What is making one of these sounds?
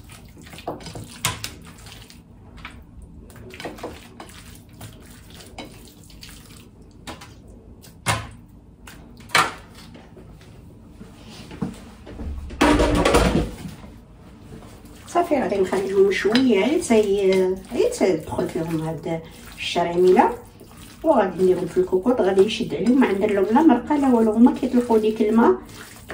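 Hands squish and turn wet meat on a plate.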